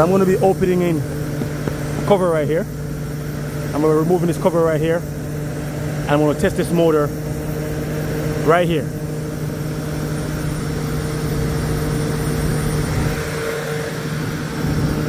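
A large fan motor hums steadily nearby.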